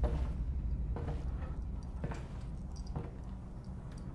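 Footsteps thud slowly across a hard, gritty floor.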